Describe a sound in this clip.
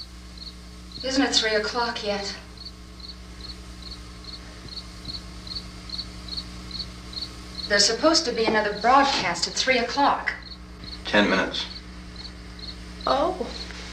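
A young woman speaks in an upset voice nearby.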